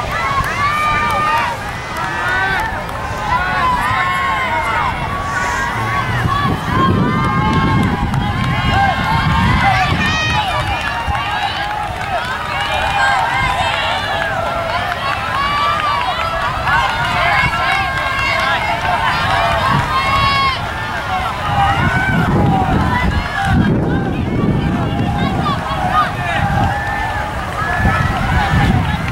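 A crowd of young spectators cheers and shouts encouragement outdoors.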